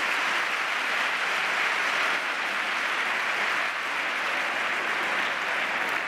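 A large crowd murmurs in a big echoing hall.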